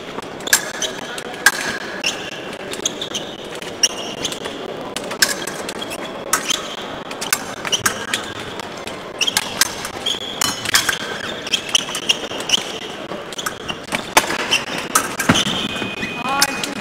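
Sneakers squeak on the floor as fencers move.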